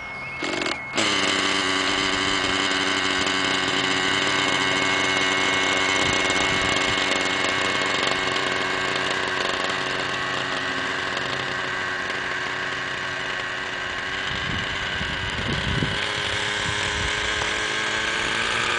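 A model helicopter's electric motor whines steadily as its rotor spins.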